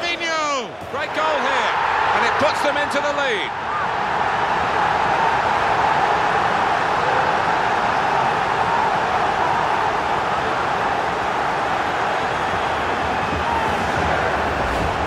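A stadium crowd roars loudly in celebration after a goal.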